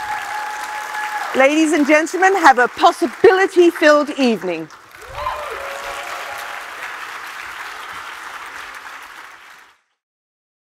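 A large audience applauds in an echoing hall.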